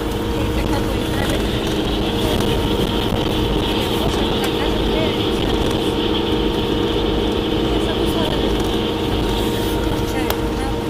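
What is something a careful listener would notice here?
Tyres roll steadily on a road.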